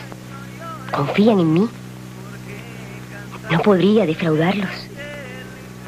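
A young woman speaks softly and hesitantly nearby.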